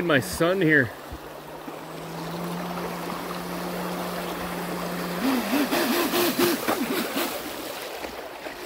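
A small toy boat motor whirs as the boat speeds through the water.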